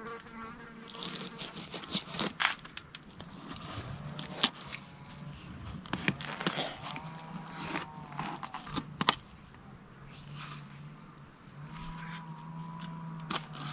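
A knife scrapes and taps on a cutting board.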